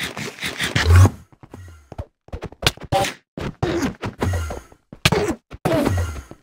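A sword strikes a creature with sharp hits.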